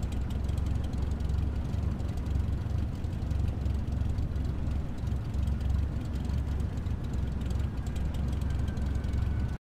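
A small propeller plane's engine idles with a steady low rumble.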